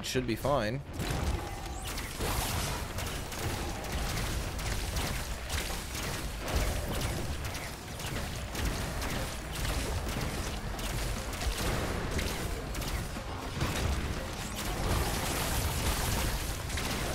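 Game gunfire and explosions crackle and boom.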